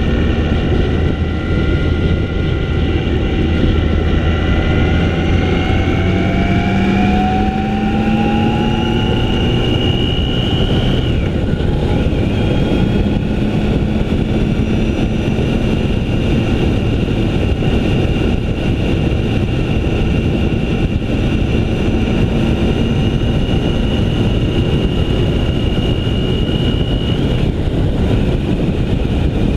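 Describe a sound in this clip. A motorcycle engine hums steadily and rises and falls in pitch while riding.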